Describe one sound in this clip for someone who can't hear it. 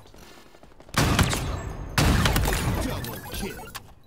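Gunshots blast loudly in quick bursts.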